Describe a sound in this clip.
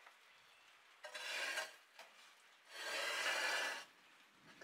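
A hand tool rasps loudly back and forth across a brick.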